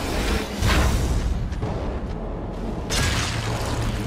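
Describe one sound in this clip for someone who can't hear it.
A heavy blow lands with a wet, gory splatter.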